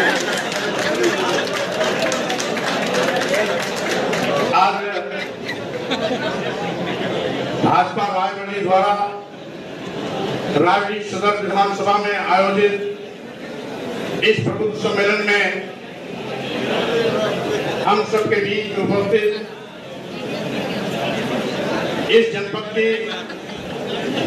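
A man speaks forcefully into a microphone, heard through loudspeakers in an echoing hall.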